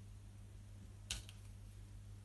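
A ruler taps down on paper.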